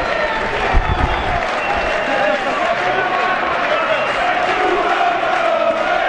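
Players clap their hands.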